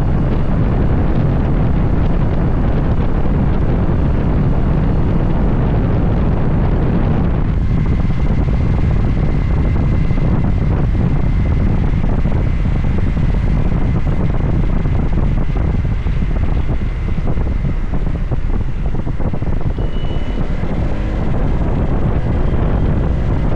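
Wind rushes loudly past the rider on a moving scooter.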